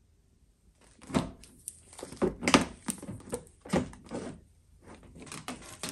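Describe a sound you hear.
Plastic wrap crinkles and rustles as a headlight is handled.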